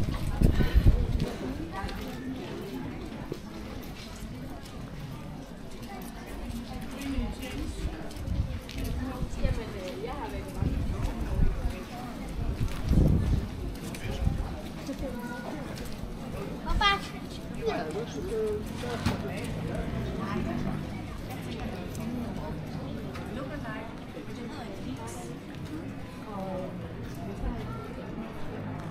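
Distant voices of passers-by murmur in an outdoor street.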